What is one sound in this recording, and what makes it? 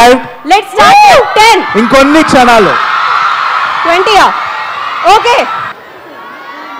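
A young woman sings loudly through a microphone.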